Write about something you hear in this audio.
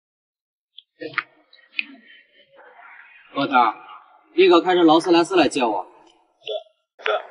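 A young man speaks on a phone with surprise.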